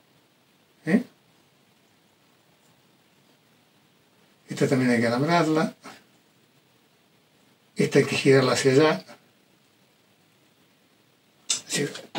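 An elderly man speaks calmly, close by, in short phrases.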